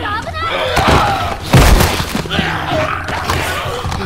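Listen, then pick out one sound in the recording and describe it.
A young girl shouts urgently.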